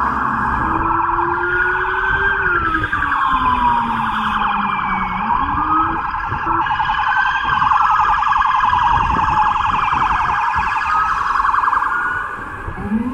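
City traffic rumbles steadily.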